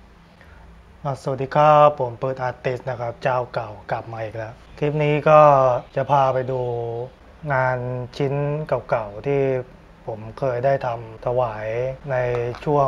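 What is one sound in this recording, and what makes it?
A young man speaks calmly and close by.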